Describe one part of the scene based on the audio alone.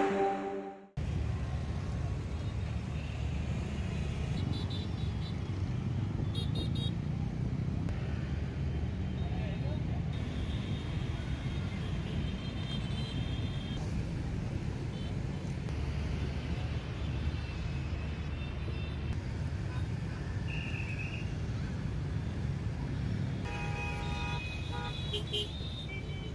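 Traffic rumbles past on a busy road.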